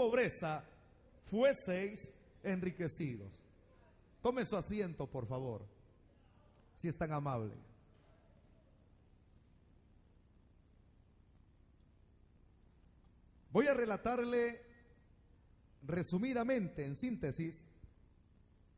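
A middle-aged man preaches with fervour through a microphone and loudspeakers, in short bursts with pauses.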